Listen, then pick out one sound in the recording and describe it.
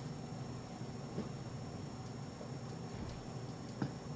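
A cat's paws patter softly across a hard floor.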